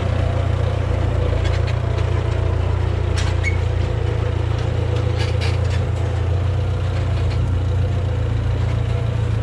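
A tractor engine idles with a steady low rumble nearby.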